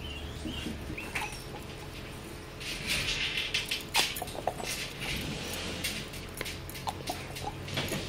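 A glass bottle clinks and its cap scrapes as it is twisted.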